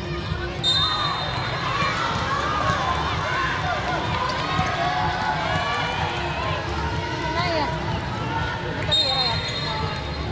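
A referee's whistle blows in short shrill blasts.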